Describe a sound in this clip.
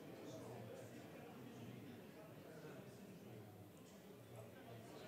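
Several men and women chat among themselves in a large room.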